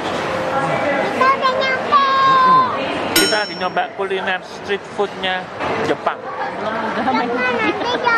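A young girl talks and giggles close by.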